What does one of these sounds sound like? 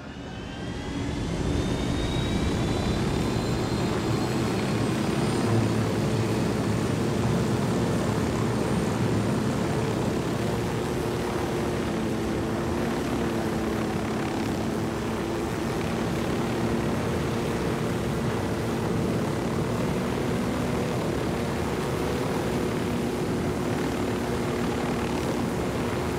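A helicopter engine whines as it spins up and then roars steadily with thumping rotor blades.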